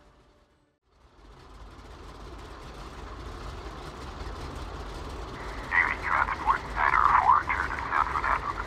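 Twin propeller engines rumble steadily and grow louder.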